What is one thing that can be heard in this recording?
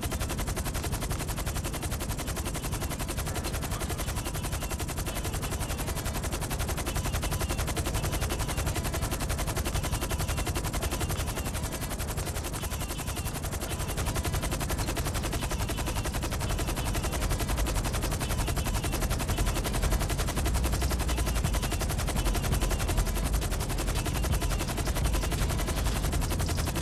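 Helicopter rotors thump steadily and loudly.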